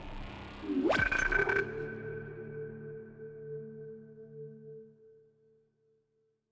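A futuristic electronic swoosh rises, then a hum slowly fades.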